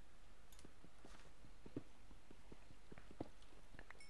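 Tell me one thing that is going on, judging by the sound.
A pickaxe chips at stone in short knocks.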